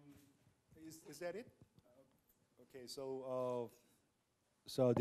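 A man speaks to an audience through a microphone in a large room.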